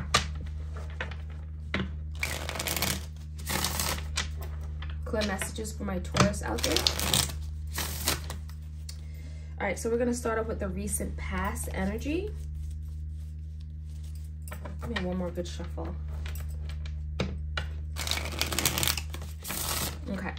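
Playing cards riffle and flick as a deck is shuffled.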